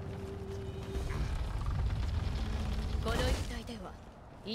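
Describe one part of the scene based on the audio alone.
Heavy wooden doors creak and rumble open.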